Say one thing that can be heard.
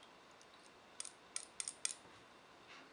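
A small dropper cap clicks and taps as it is twisted on a glass bottle.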